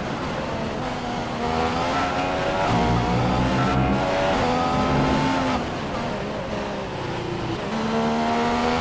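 A Formula One car's engine drops in pitch as it brakes and downshifts.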